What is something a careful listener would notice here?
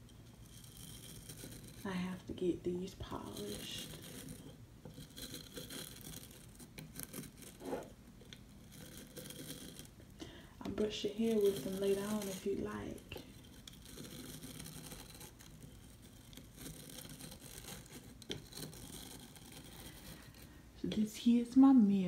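Stiff bristles rub and scratch softly.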